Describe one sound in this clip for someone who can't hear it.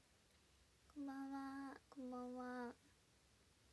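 A young woman speaks briefly in a high, sing-song voice close to a microphone.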